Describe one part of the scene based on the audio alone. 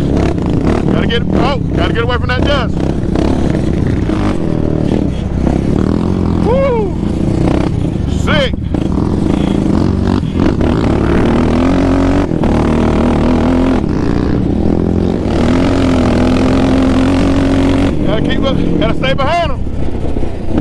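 Other quad bike engines whine and rev nearby.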